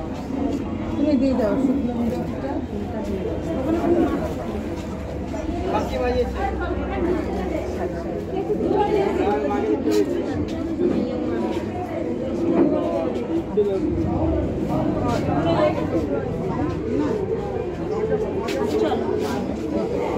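Several women chatter close by.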